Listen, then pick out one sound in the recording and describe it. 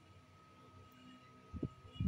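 Metal test clips tap and clatter against each other.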